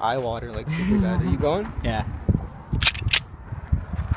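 A pistol's metal parts click as they are handled.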